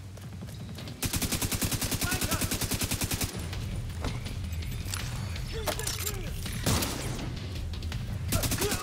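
An automatic rifle fires rapid bursts close by.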